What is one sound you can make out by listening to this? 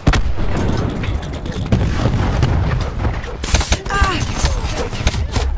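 Automatic rifle fire rattles in a video game.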